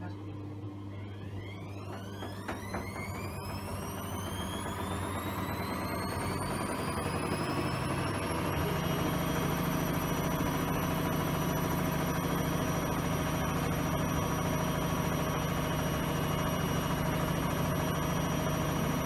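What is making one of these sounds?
A washing machine motor whines ever higher as its drum speeds up into a spin, then holds a steady high whine.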